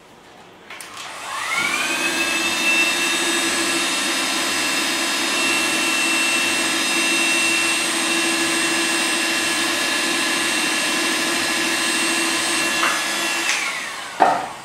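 A small power tool whirs up to a steady high whine, then winds down.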